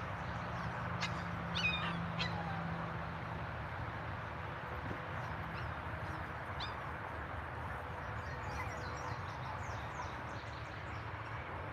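Puppies yip and squeak softly.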